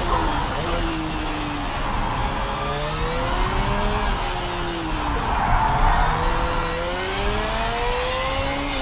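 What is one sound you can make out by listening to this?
A racing car engine whines, its pitch rising and falling as it shifts gears.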